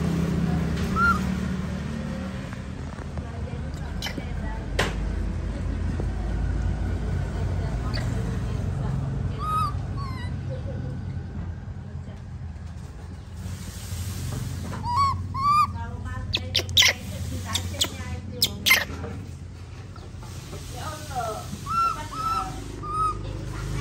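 A baby monkey squeaks in short, high chirps.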